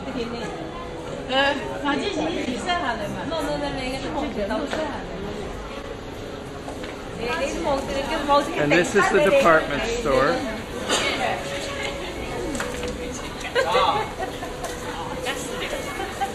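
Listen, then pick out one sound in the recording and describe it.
A crowd chatters in an echoing hall.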